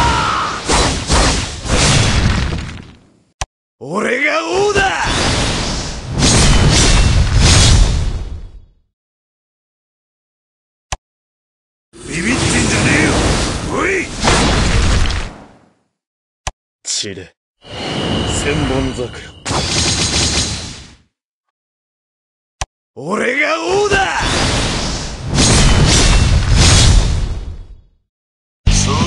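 Swords slash and clang in a fast fight.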